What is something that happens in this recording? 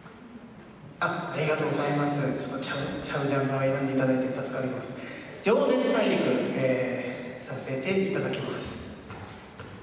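A band plays a tune in a large hall.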